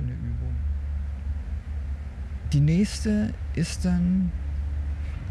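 Wind rumbles across the outdoors.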